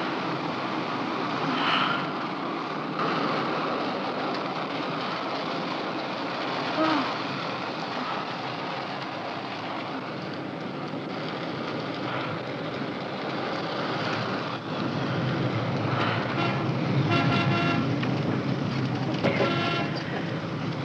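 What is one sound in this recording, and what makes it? A car engine hums and tyres roll on the road, heard from inside the car.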